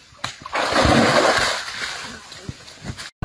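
Water splashes loudly as an animal wades through it.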